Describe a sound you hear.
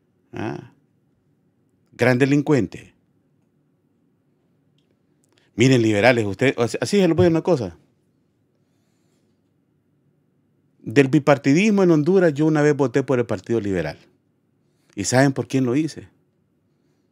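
A middle-aged man speaks with emphasis into a close microphone, in short bursts with pauses.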